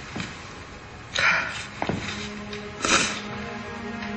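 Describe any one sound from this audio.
Paper rustles as a woman unfolds a letter.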